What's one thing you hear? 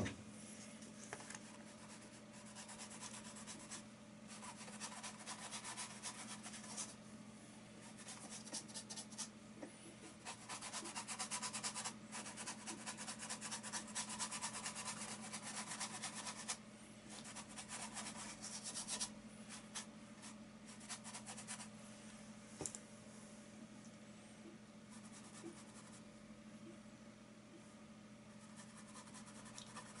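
A paintbrush scratches and swishes against canvas in quick strokes.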